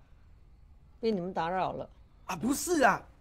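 An elderly woman speaks close by.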